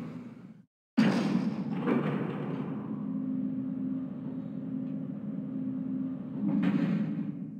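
An elevator hums and rumbles as it moves.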